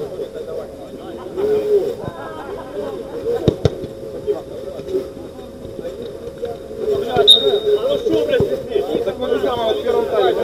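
Men shout and call out to each other outdoors.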